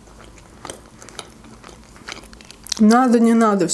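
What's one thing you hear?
Flaky pastry crackles softly as a young woman chews close to a microphone.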